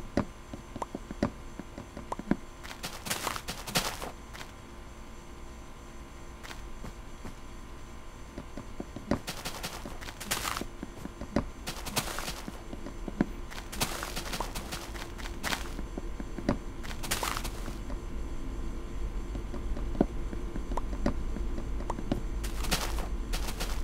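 Game blocks crunch as they are broken with repeated taps.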